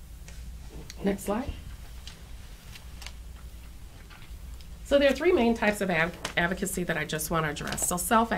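A woman speaks into a microphone, reading out calmly.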